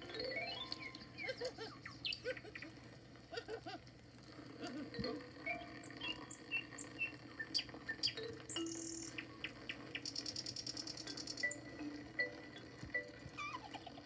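A bird sings through a small loudspeaker.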